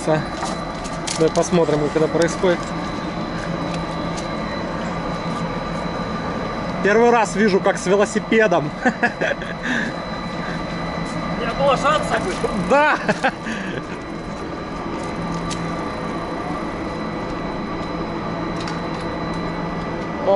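A chairlift's machinery hums steadily.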